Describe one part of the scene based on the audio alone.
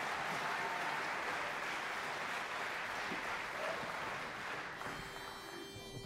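An audience applauds in a large hall and fades out.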